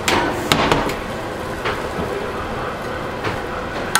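A metal roasting pan clanks onto an oven rack.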